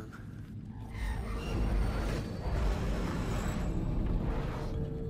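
A deep rumble fills an echoing chamber.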